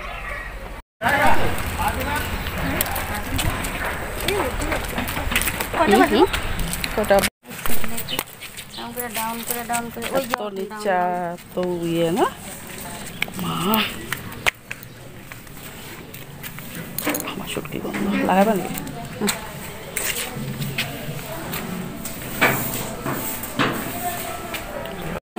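Women talk nearby.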